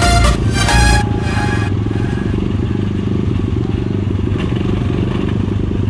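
Dirt bike engines idle with a steady, throbbing rumble nearby.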